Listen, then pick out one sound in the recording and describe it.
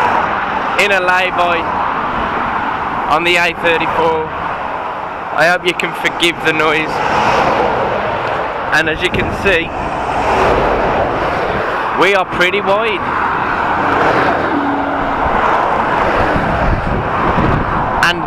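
Wind and road noise rush steadily past a moving vehicle.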